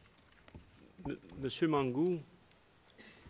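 A middle-aged man speaks into a microphone.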